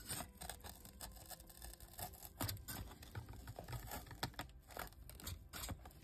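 Fingers rub and squeeze a foam wall piece, with soft scratchy creaks, close up.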